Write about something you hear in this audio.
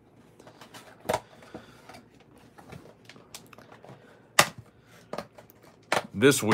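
A cardboard box lid is pried open with a soft scrape and pop.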